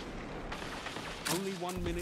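Energy weapon shots fire in quick bursts.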